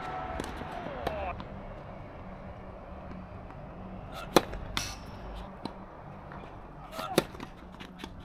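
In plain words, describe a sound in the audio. Tennis players' shoes squeak on a hard court.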